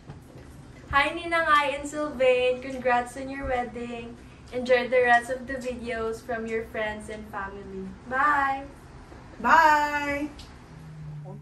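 A young woman talks cheerfully up close.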